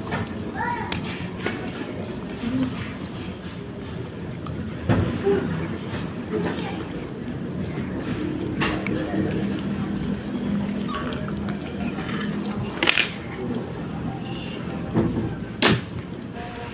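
Fish bones crunch between a kitten's teeth.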